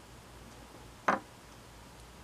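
A screwdriver is set down on a hard surface with a light tap.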